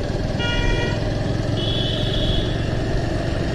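Vehicle horns honk briefly nearby.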